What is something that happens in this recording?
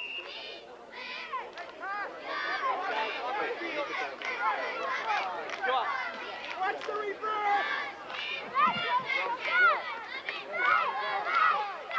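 Young children shout and chatter excitedly nearby, outdoors.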